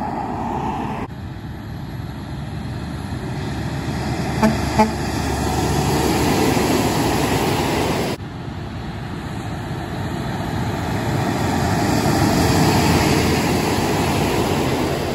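Heavy trucks roar past on a highway, swelling and fading.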